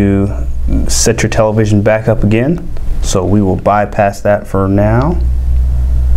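A man speaks calmly and close, through a clip-on microphone.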